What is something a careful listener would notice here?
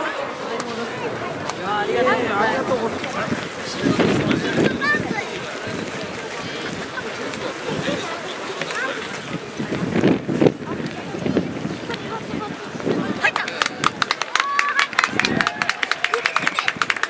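A crowd of spectators murmurs and calls out across an open stadium.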